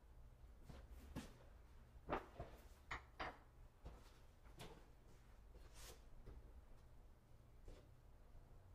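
Objects clatter and knock nearby.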